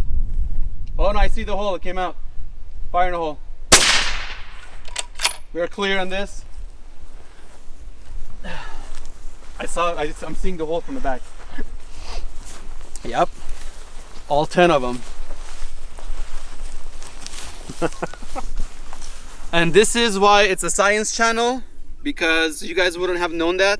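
A man talks calmly outdoors, close by.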